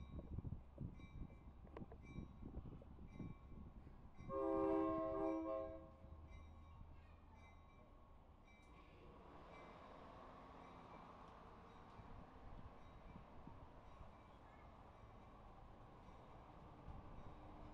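A train pulls away and rolls past along the track.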